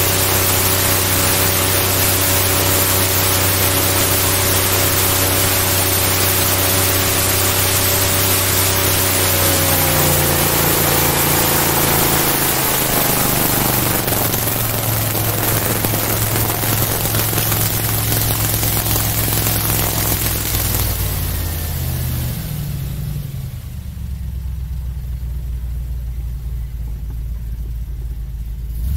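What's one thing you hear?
A loud airboat engine and propeller roar steadily, then slow down and quieten.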